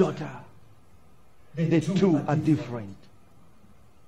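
A man speaks with animation to an audience.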